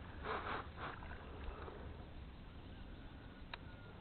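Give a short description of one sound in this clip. A fishing lure plops into the water.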